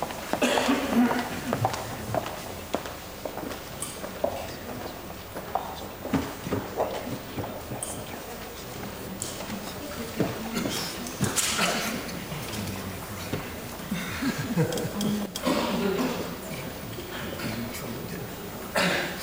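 A young woman speaks calmly into a microphone, echoing through a large hall.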